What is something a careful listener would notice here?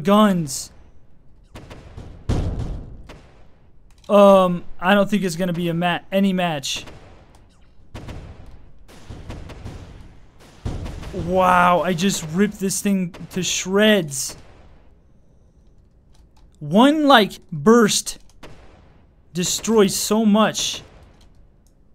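Explosions boom with a low rumble.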